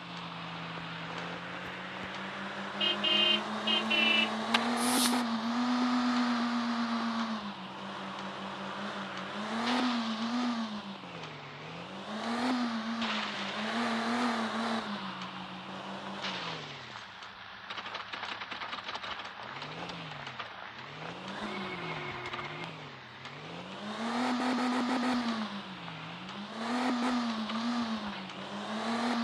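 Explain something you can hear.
A car engine hums steadily, then keeps revving up and down.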